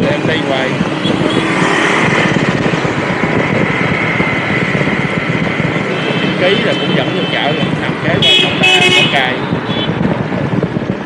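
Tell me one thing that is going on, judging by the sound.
Motorbike engines hum and drone as they ride past on a busy street.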